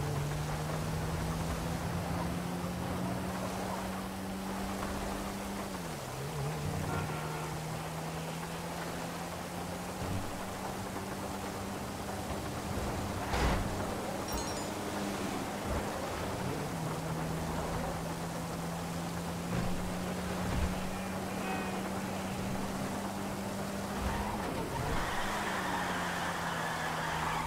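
A car engine hums steadily, dropping briefly as it shifts gear.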